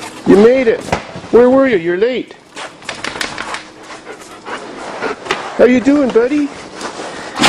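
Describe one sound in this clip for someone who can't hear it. A dog whines and yelps up close.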